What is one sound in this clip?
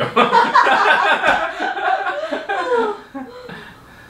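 A man laughs nearby.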